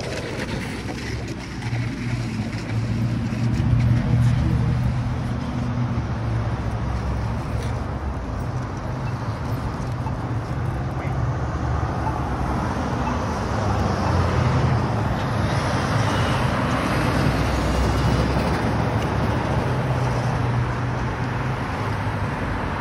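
Wind buffets loudly throughout, outdoors.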